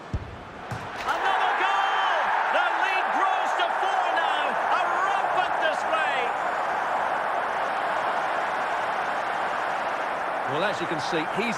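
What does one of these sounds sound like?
A large crowd cheers and roars loudly.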